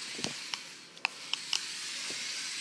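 A toy car clatters as it lands on a hard floor.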